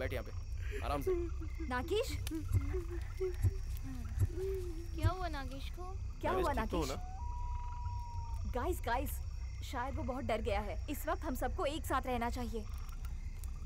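Young women talk quietly close by.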